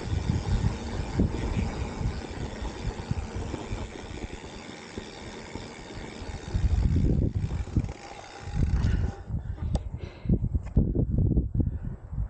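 Wind buffets past outdoors while riding.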